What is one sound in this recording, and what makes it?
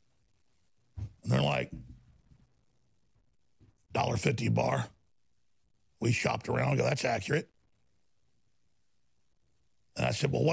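A middle-aged man speaks forcefully into a microphone in short bursts.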